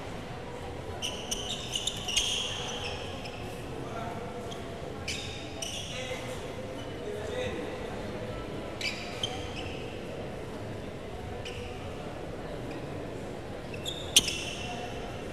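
Shuttlecocks are struck with sharp racket pops in a large echoing hall.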